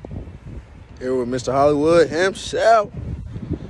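A young man talks with animation outdoors, close to the microphone.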